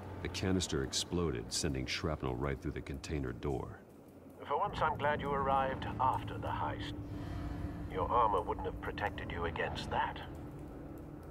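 A man speaks calmly in a deep, low voice.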